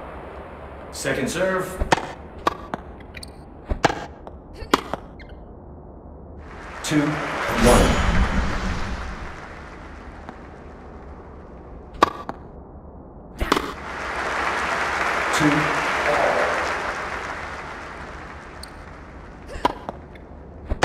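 A tennis racket strikes a ball with sharp pops, several times.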